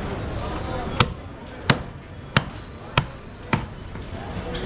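A cleaver chops through meat onto a wooden block with sharp thuds.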